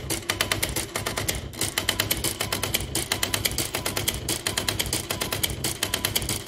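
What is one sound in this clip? An electric typewriter types quickly with rapid clacking strikes.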